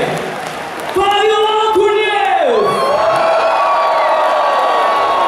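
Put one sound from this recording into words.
A young man sings loudly into a microphone through loudspeakers, holding long notes.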